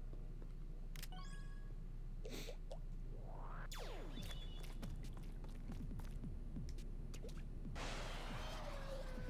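Electronic game chimes and whooshes play.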